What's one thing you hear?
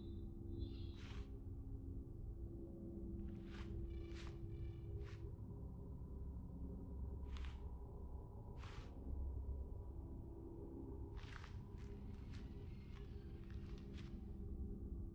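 Soft interface blips sound each time a menu selection moves.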